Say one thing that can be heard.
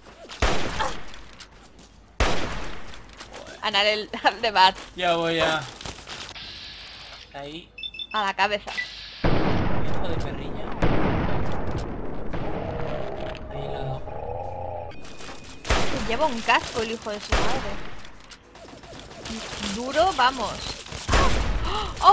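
Rifle shots ring out in bursts.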